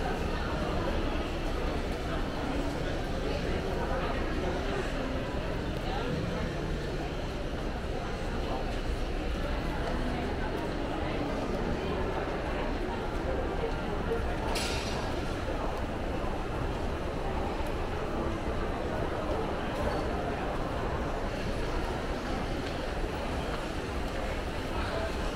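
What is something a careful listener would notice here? Many people murmur and chatter in a large echoing hall.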